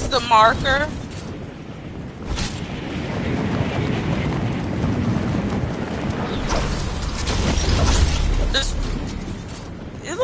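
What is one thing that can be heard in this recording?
Wind rushes loudly past during a fast fall.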